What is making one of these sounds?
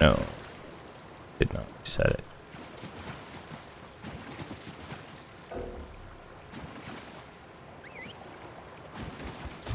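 Water splashes under a galloping horse.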